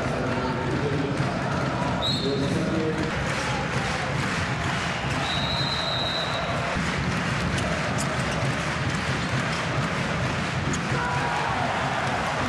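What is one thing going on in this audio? A large crowd cheers and chants steadily in an echoing arena.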